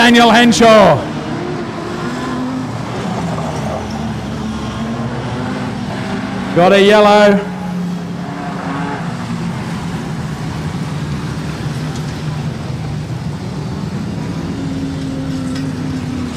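Car engines drone steadily further off.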